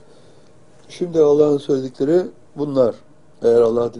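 An elderly man reads out calmly and close to a microphone.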